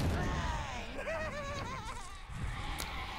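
Sheep bleat nearby.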